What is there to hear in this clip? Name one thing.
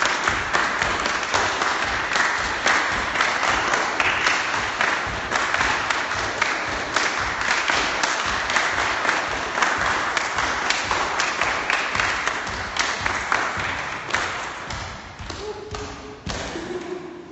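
A group of people clap their hands rapidly in an echoing room.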